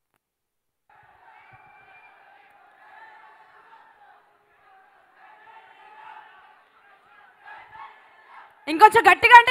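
An audience claps faintly in a large hall.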